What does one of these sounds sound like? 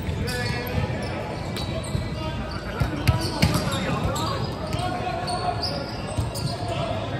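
Young men call out and chatter across a large echoing hall.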